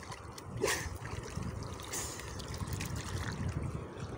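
A diver splashes while lifting a dripping net from the water.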